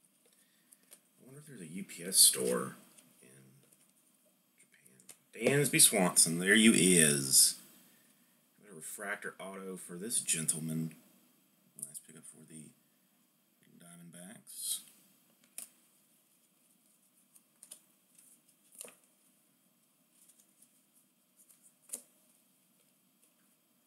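Cards softly slide and flick against each other as they are sorted by hand.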